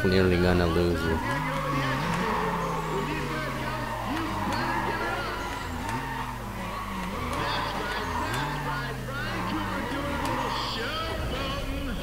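Car tyres squeal as they spin in place.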